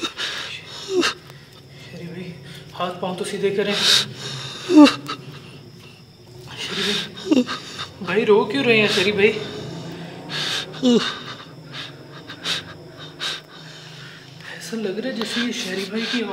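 A man groans weakly close by.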